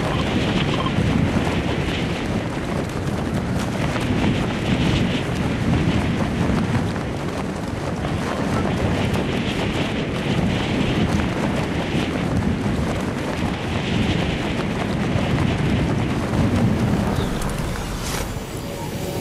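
Wind rushes loudly past a skydiving game character.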